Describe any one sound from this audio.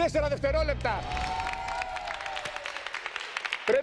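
A group of people clap and cheer.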